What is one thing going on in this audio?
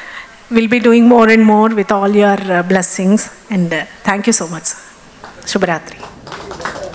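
A woman sings into a microphone over loudspeakers.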